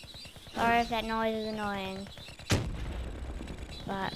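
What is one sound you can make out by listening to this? A missile whooshes through the air.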